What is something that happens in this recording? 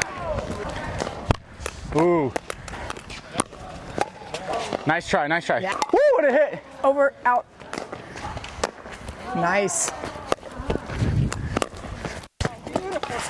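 Paddles sharply pop against a plastic ball back and forth.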